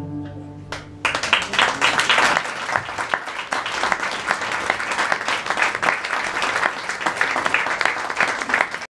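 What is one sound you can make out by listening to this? A small audience claps loudly close by.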